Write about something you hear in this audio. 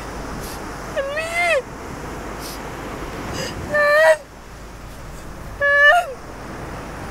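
A young woman cries out in distress, sobbing.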